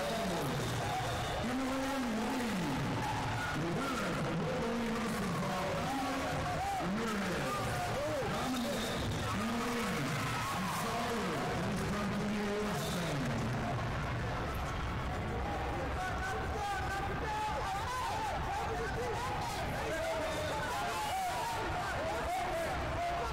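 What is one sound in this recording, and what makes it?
Shoes squeak on a mat.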